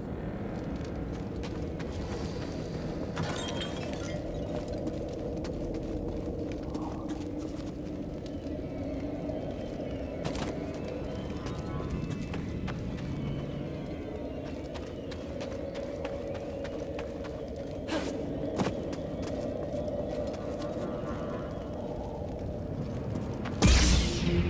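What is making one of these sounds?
A low, steady rumbling drone fills an echoing space.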